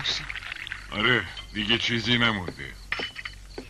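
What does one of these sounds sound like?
An elderly man answers briefly.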